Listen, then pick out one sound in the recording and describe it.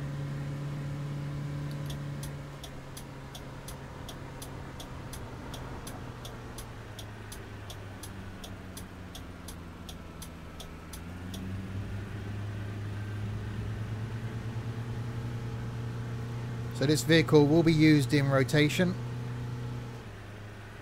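A truck engine hums steadily, rising in pitch as it speeds up.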